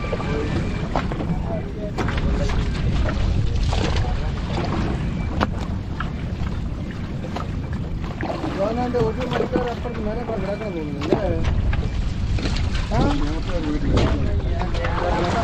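Water splashes and churns against a boat.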